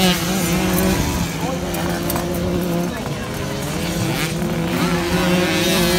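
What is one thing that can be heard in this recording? Motorcycle engines roar nearby.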